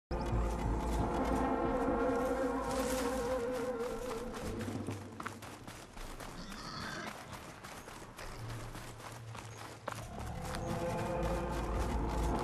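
Footsteps crunch quickly over sand.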